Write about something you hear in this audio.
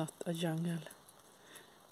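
A hen clucks nearby.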